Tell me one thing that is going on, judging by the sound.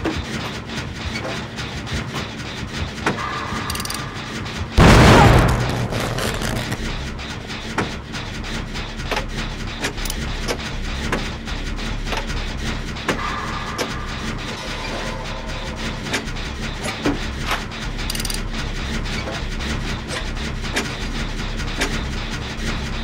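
A machine rattles and clanks while being repaired.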